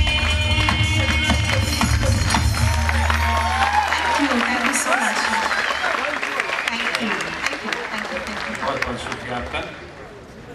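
A young woman sings into a microphone, heard through loudspeakers.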